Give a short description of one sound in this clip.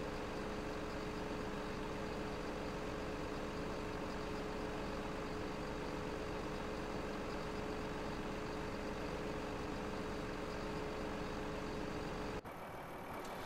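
A heavy machine's engine hums steadily.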